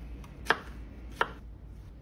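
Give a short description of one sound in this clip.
A knife chops through strawberries on a cutting board.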